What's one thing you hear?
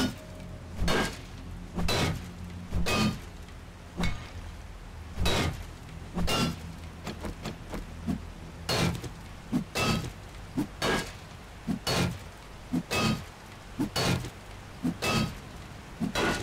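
A heavy club strikes a metal door again and again with loud ringing clangs.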